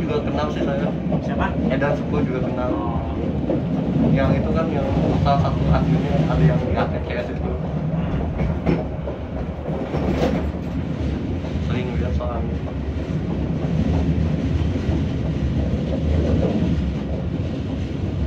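Train wheels clack over rail joints and points.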